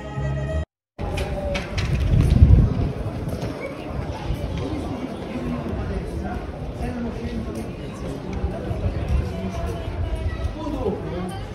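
A crowd of people chatters in the open air nearby.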